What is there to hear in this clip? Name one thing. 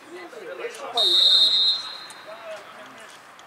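A referee's whistle blows a long, sharp blast.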